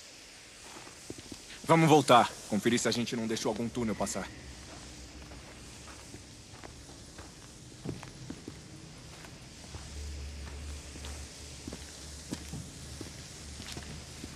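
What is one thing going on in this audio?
Footsteps crunch slowly on loose gravel.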